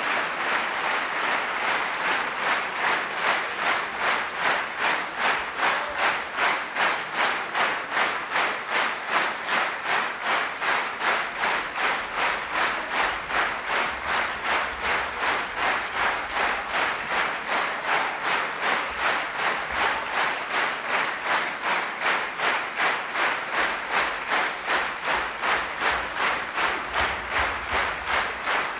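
An audience applauds in rhythmic unison in a large hall.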